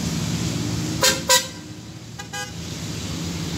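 Car horns honk in short blasts.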